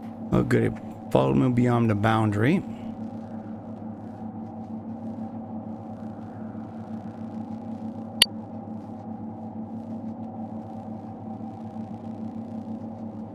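Footsteps crunch steadily on gravelly ground.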